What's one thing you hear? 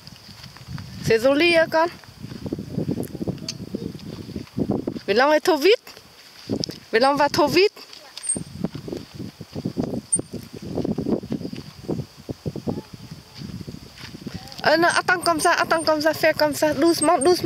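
A young child talks loudly and excitedly nearby.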